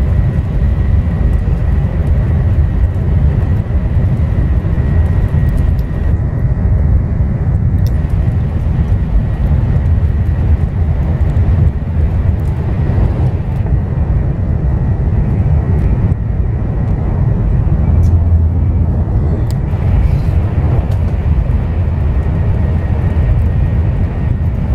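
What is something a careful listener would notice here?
A high-speed train rumbles steadily along the track, heard from inside the carriage.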